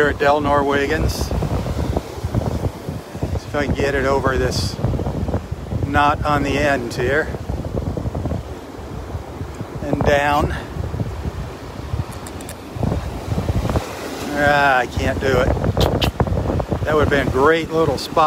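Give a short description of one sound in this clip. Waves crash and wash onto a shore nearby.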